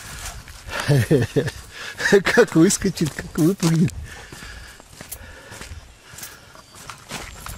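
A dog's paws patter on a gravel path.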